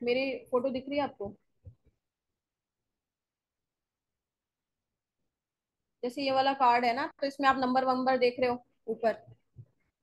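A woman speaks calmly through a microphone, pausing now and then.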